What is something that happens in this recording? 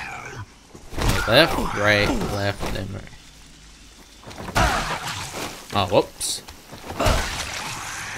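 A heavy blow thuds wetly into flesh.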